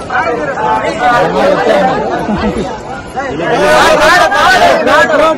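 Several men and women talk nearby outdoors.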